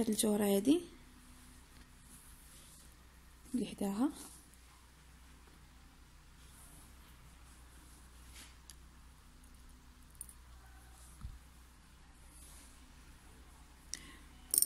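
Thread pulls softly through fabric.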